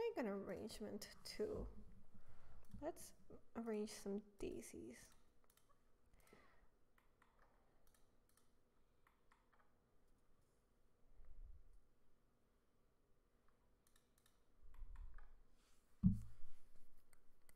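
Small tools clink and tap softly on a workbench.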